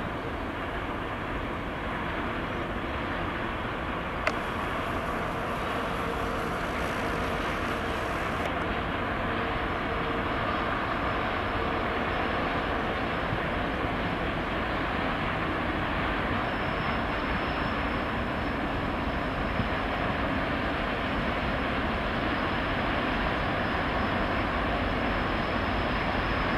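A long train rumbles steadily along the tracks in the distance, outdoors.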